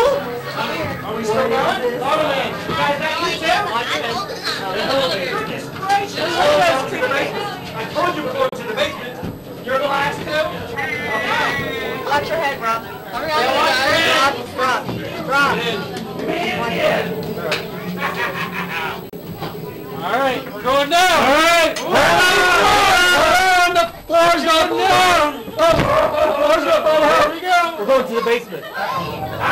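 Several young women talk and laugh close by.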